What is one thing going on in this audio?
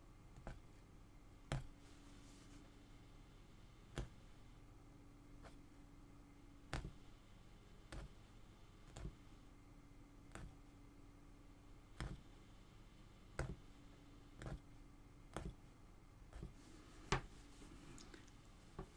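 A punch needle pokes through taut fabric with soft, regular clicks.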